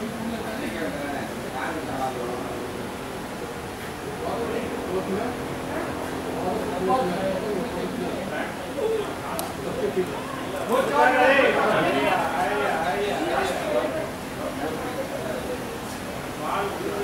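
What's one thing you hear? Men call out to each other across an open field outdoors.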